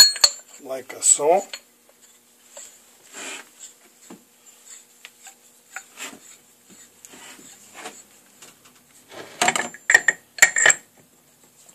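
Metal tools clink and clatter.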